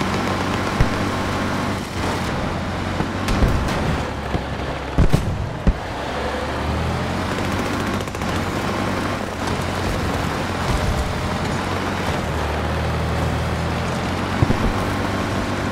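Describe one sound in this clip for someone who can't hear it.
Heavy wheels crunch over snowy ground.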